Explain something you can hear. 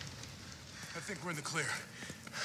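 A man grunts with effort.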